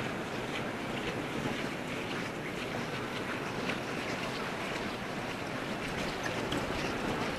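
A crowd murmurs and chatters steadily in a large echoing hall.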